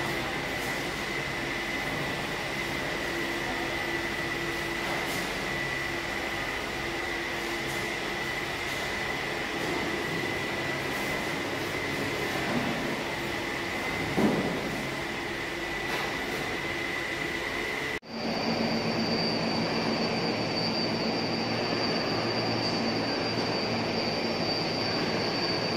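Machinery hums steadily in a large echoing hall.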